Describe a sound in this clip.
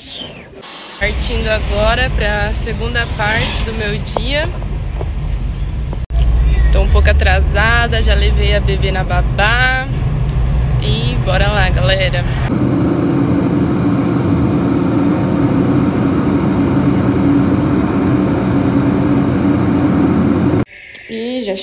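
A car engine hums steadily on the road.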